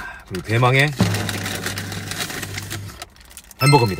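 A paper wrapper rustles and crinkles.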